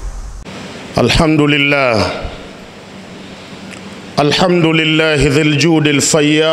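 A man chants in a steady, melodic voice through a microphone in an echoing hall.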